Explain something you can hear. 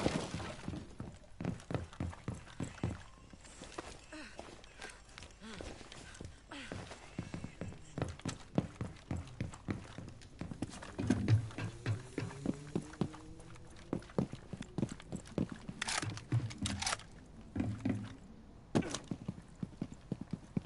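Footsteps patter quickly on hard floors.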